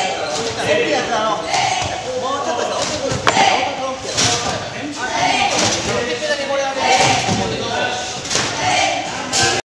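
A trampoline creaks and thumps as a gymnast bounces.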